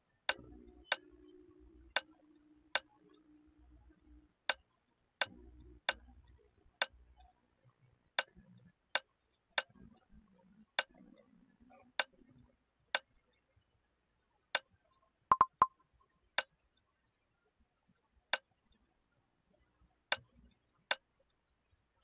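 Short menu click sounds ring out with each tap.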